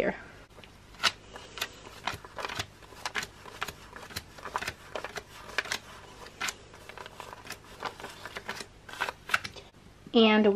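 Paper banknotes rustle and snap as they are counted by hand.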